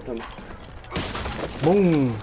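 A sledgehammer smashes through a wall with a loud crash.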